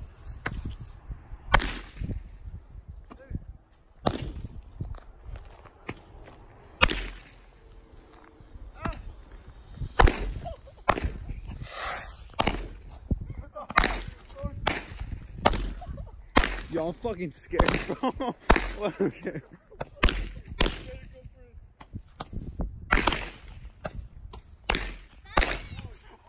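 Small model rockets launch with sharp whooshing pops, one after another.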